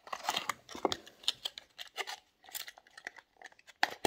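A plastic tray crinkles as it slides out of a box.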